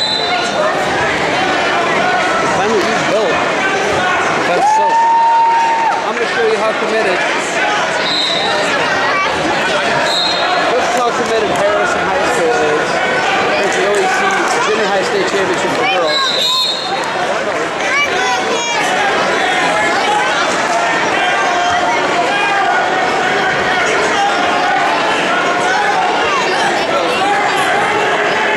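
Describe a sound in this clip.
A large crowd of men, women and children chatters loudly in an echoing hall.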